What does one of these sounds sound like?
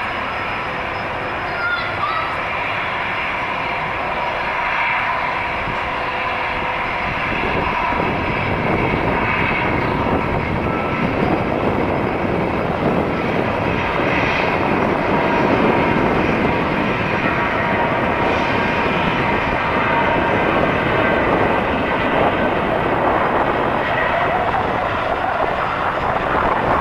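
A jet airliner's engines roar as it rolls along a runway.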